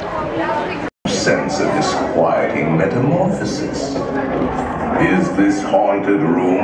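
Many voices murmur and talk in an echoing room.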